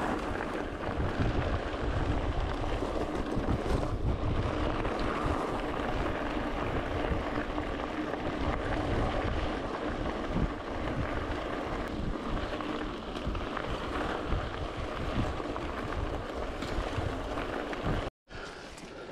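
Bicycle tyres rumble and crunch over loose gravel.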